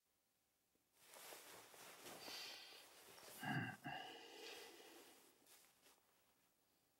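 Bedding rustles softly as a man turns over in bed.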